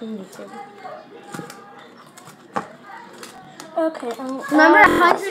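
Plastic rustles and crinkles in hands.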